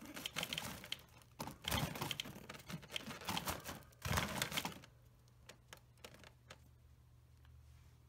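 A small animal rustles about inside a cage.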